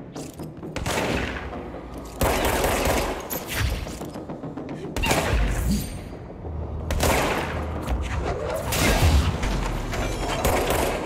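A pistol fires loud shots that boom and echo.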